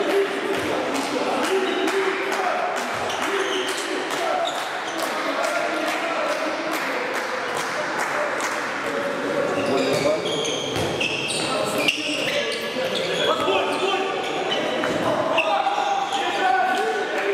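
A handball bounces on an indoor court floor in a large echoing hall.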